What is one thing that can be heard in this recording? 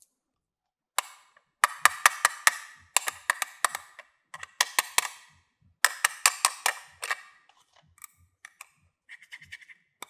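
Hard plastic toys clack and rattle against each other.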